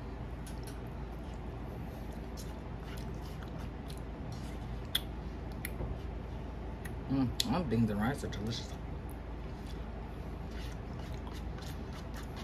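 A spoon taps and scrapes in a small plastic cup.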